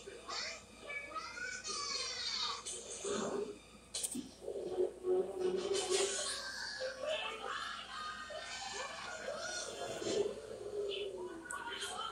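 Elephants trumpet loudly, heard through a television speaker.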